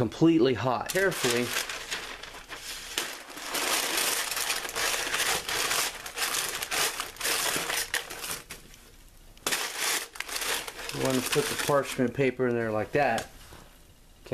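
Paper crinkles and rustles as it is handled close by.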